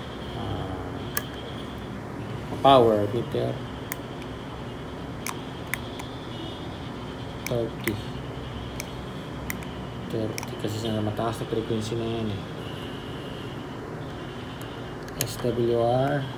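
A small switch clicks.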